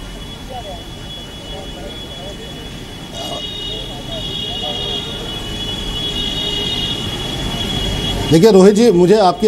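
Several men and a woman talk over one another at a distance through microphones.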